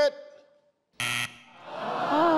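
A game show buzzer sounds a short harsh tone.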